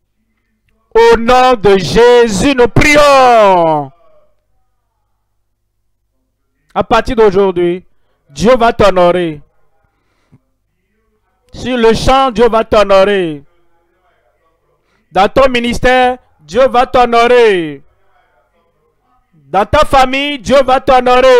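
An elderly man speaks forcefully through a loudspeaker.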